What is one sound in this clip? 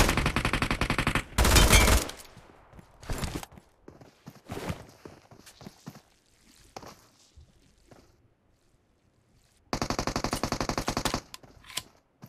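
Rapid automatic gunfire rattles in loud bursts.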